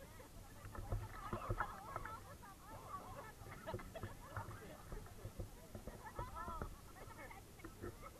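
Water splashes as people swim close by.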